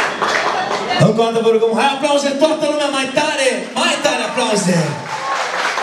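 A man sings into a microphone over a loudspeaker.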